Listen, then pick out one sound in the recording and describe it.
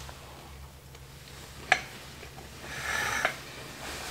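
A young man bites into crunchy food and chews.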